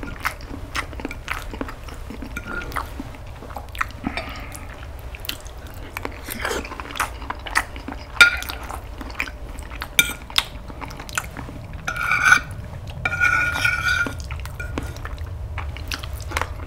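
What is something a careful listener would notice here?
Metal cutlery scrapes and clicks against a plate.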